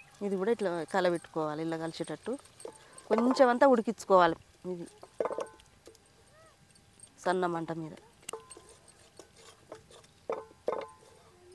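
A wooden spatula scrapes and stirs food in a metal pot.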